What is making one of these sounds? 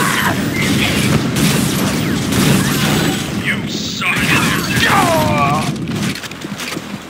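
Heavy gunfire blasts and explosions boom in quick bursts.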